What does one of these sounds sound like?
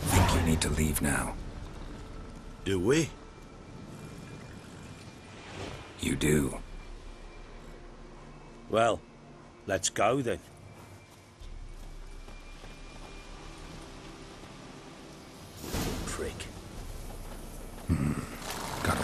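A man speaks in a low, gruff voice.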